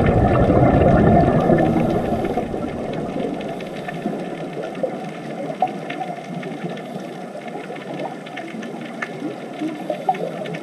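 Scuba divers' exhaled bubbles gurgle and rumble underwater.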